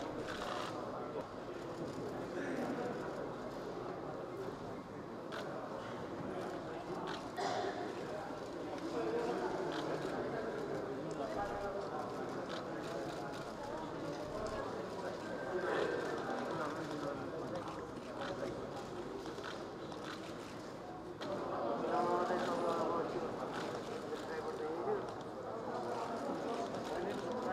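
A crowd of men and women murmur and talk quietly nearby.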